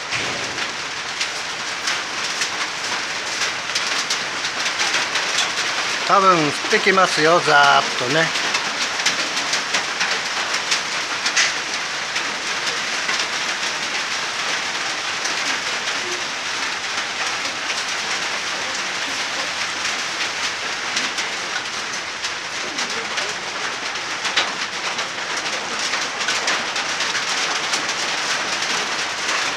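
Heavy rain falls steadily outdoors.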